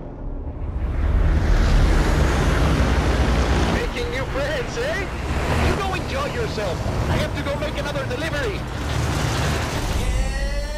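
Propeller engines of a large aircraft drone loudly.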